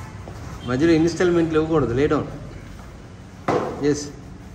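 A foam mat slaps down onto a hard floor.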